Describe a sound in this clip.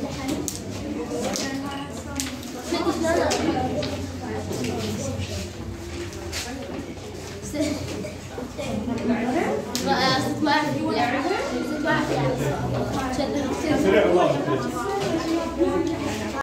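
Many boys chatter at once in a noisy room.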